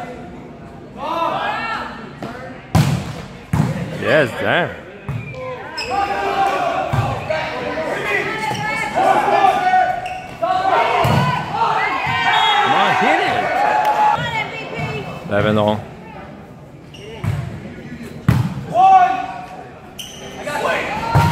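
Young men shout and call out loudly in an echoing hall.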